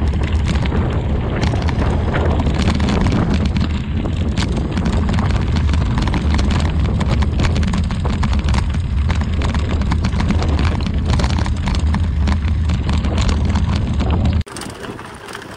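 Wind roars loudly across a microphone outdoors.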